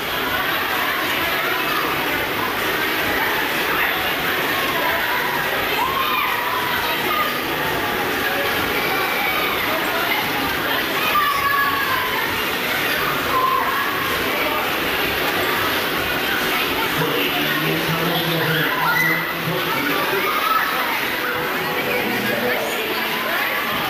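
Young riders shout and scream with excitement nearby.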